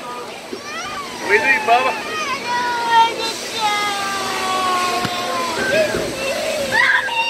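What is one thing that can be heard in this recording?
A young girl wails and sobs loudly close by.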